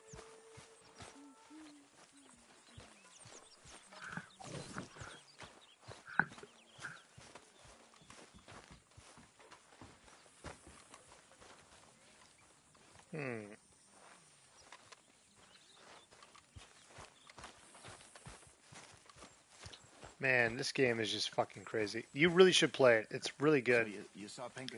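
Footsteps tread steadily on grass.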